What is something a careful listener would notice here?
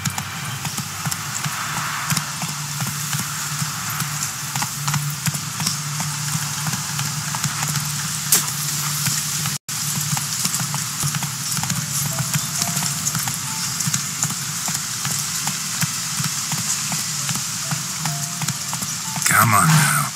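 Horse hooves gallop steadily on a dirt path.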